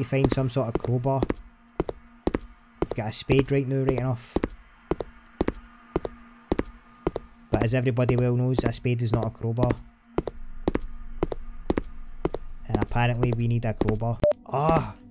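A young man talks into a microphone in short bursts.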